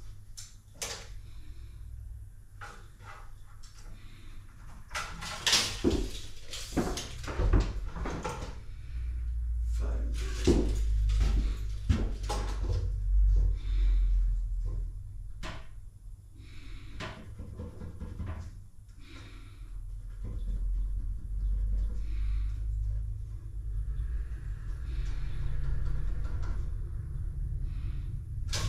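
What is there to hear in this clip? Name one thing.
Wooden boards knock and clatter as they are handled.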